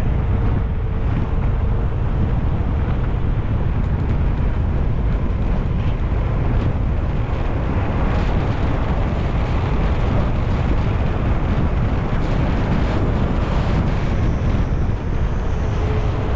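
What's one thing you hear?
Bicycle tyres hum steadily on a paved road.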